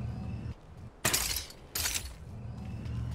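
A bright chime sounds as a weapon is picked up.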